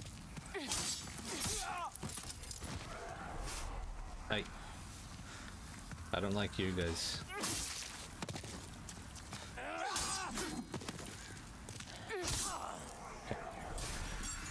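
Swords clash and slash in a game fight.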